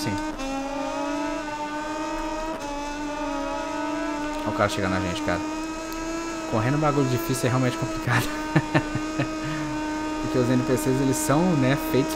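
A motorcycle engine screams at high revs, shifting up through the gears.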